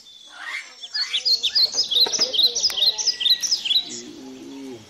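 A bird calls with quick chirping cries.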